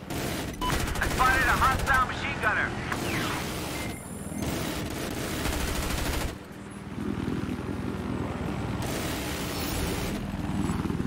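A helicopter engine roars and its rotor thumps steadily.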